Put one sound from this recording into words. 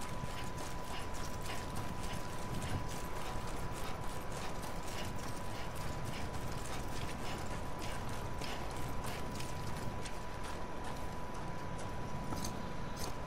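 Footsteps run quickly over loose gravel.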